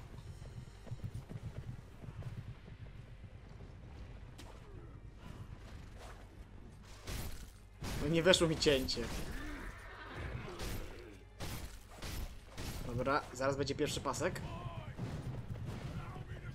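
A horse gallops heavily over the ground.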